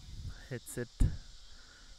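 A cricket ball knocks sharply against a bat.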